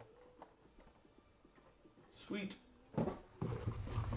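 Cardboard rustles and scrapes.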